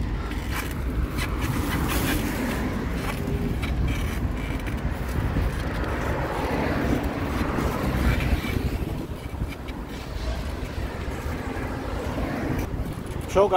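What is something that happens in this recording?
Cars drive by on a nearby road.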